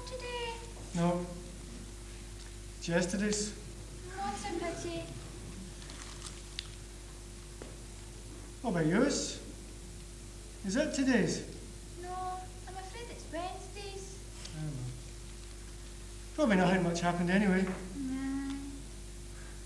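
A young man speaks with expression.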